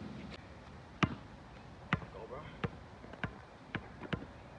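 A basketball bounces on an outdoor court with quick, sharp thumps.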